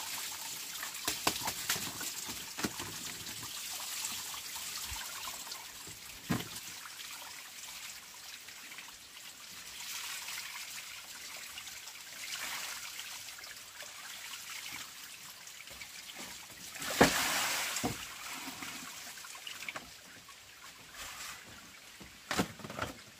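Wood knocks against a bamboo floor.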